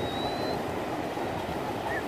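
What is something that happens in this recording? Water splashes as a person runs through the shallows.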